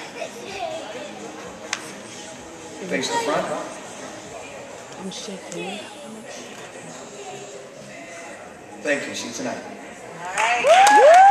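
An audience murmurs quietly in a large hall.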